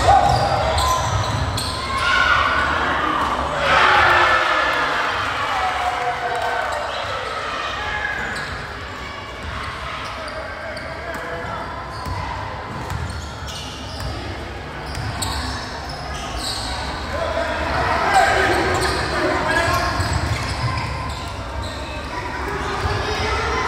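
Players and onlookers shout in a large echoing gym.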